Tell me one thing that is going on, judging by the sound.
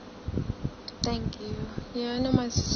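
A young woman speaks softly, close to a phone microphone.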